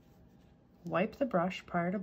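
A paintbrush dabs on a paper towel.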